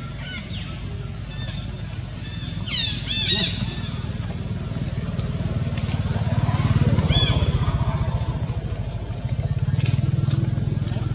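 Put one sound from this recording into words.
A monkey rustles through grass and dry leaves as it walks.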